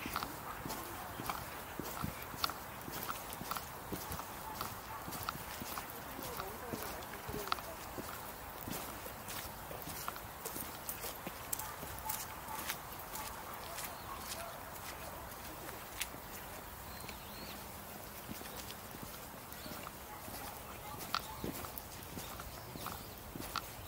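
Footsteps crunch and tap along a paved path outdoors.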